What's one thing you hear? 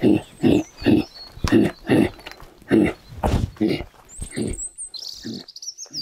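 Feet thud and scrape on a fallen log as people climb down.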